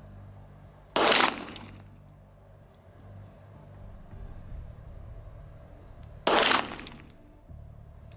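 A handgun fires a loud shot that echoes across open ground.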